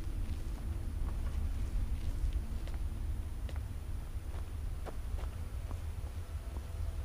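Footsteps crunch over snow.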